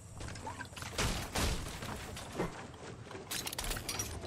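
Wooden walls snap into place with quick hollow knocks.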